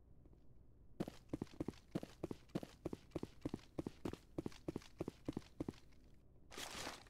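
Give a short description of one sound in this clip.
Heavy boots step in a steady rhythm on a metal floor.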